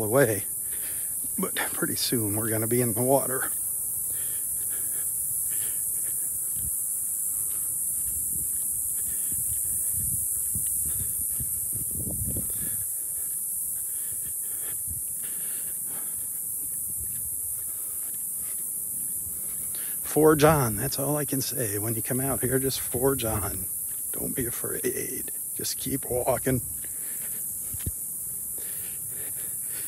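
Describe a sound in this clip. Footsteps crunch softly on a sandy path.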